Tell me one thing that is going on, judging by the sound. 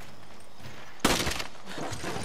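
A single pistol shot cracks loudly.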